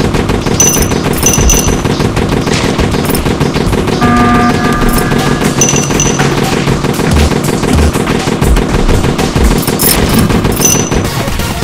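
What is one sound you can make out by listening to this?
Small guns fire in rapid, repeated bursts.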